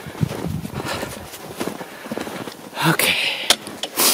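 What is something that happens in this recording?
Boots crunch through snow.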